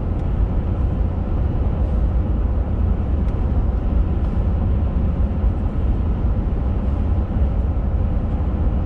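Tyres roll steadily on a paved road.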